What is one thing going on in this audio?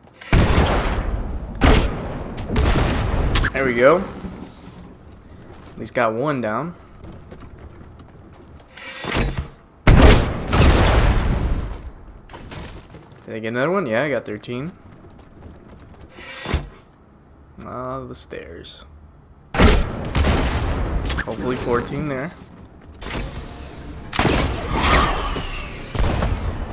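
A cannon fires with a loud boom.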